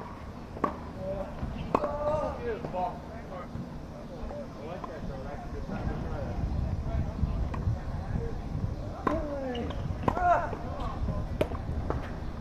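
A tennis ball is struck with a racket in the distance.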